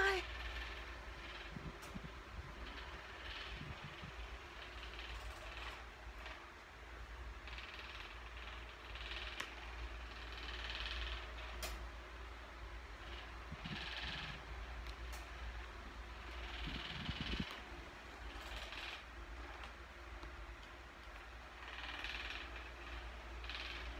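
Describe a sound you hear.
A cat breathes softly in its sleep.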